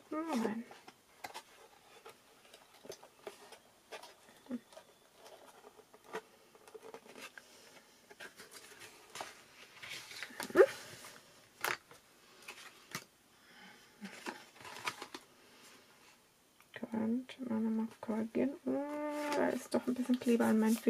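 Paper rustles and crinkles as it is folded and handled.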